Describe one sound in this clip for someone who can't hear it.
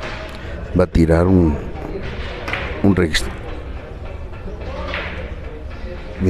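Billiard balls clack against each other and the cushions.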